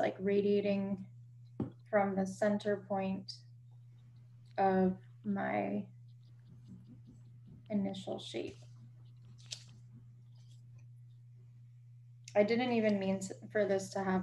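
A woman talks calmly over an online call, in short bursts with pauses.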